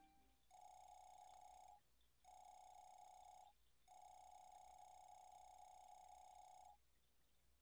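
Rapid electronic blips chatter in short bursts, like a game character talking.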